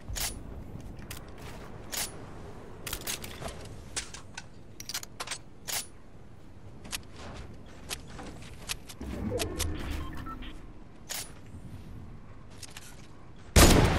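Building pieces snap into place in quick clicks.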